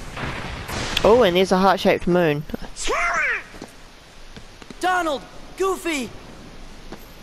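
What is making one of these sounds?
A young man shouts urgently, close by.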